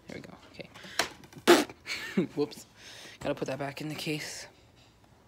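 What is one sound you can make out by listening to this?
A plastic game case clicks open and shut.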